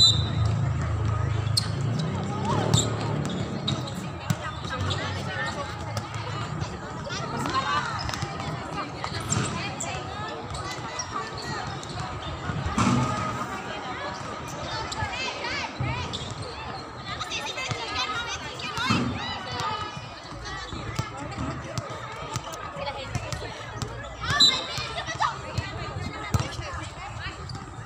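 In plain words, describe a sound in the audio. Young women call out and chat across an outdoor court.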